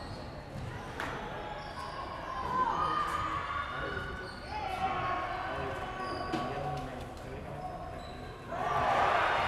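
Men talk nearby in a large echoing hall.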